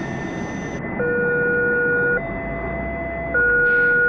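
A level crossing bell rings in alternating tones.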